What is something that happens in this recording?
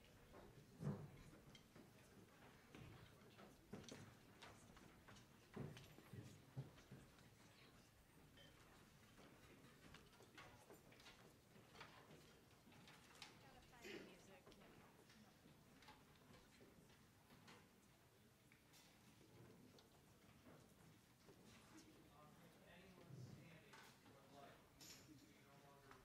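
Chairs and stands knock and clatter now and then.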